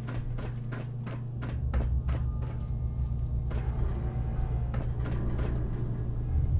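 Footsteps tread on a hard floor at a steady pace.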